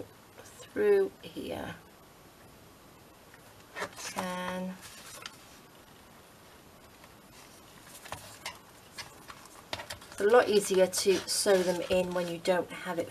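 Thread rasps as it is pulled through paper.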